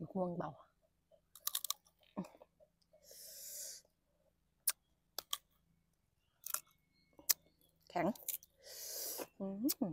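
Crisp fruit snaps with a crunch as a young woman bites it.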